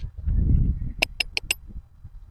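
A hammer taps sharply on metal wire several times.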